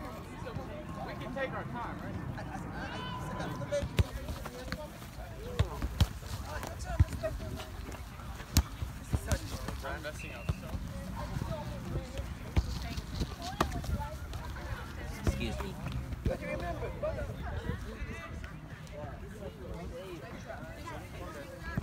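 A soccer ball is kicked with dull thumps.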